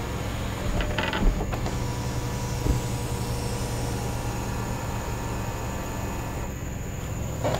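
A sunroof motor hums steadily as the sunroof slides shut.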